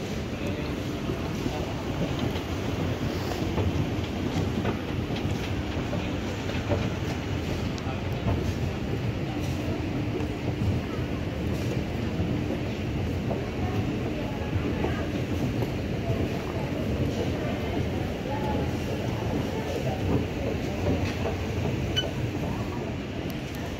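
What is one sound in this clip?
An escalator hums steadily as it runs.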